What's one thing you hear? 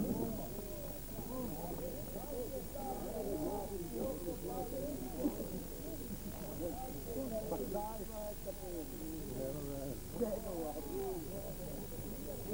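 A middle-aged man talks close by.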